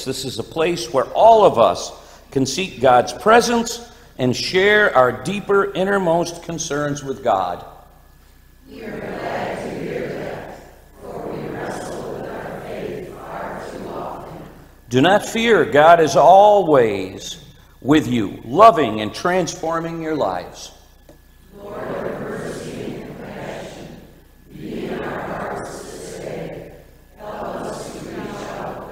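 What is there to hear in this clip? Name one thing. An elderly man speaks steadily and earnestly into a microphone, with short pauses.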